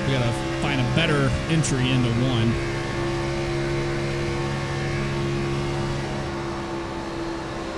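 A race car engine drones steadily at high speed.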